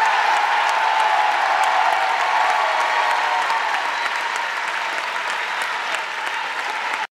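A crowd cheers and whistles.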